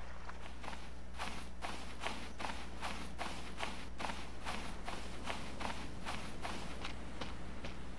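Footsteps pad quickly over sand and grass.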